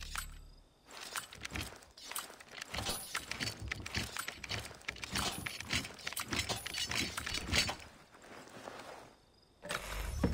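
A metal lock rattles and clanks as it is forced open.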